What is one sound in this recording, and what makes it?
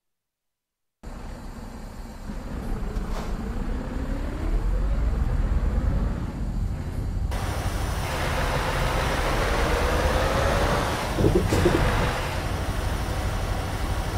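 A truck engine rumbles and revs as the truck pulls away.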